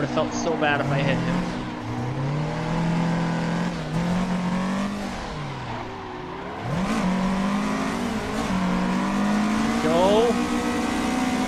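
Tyres squeal as a car drifts.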